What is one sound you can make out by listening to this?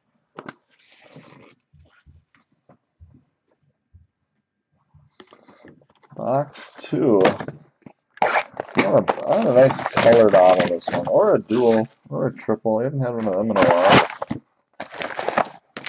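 Cardboard boxes knock and slide as hands move them.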